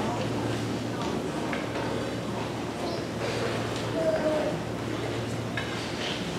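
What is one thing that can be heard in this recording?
A concert band plays music in a large echoing hall.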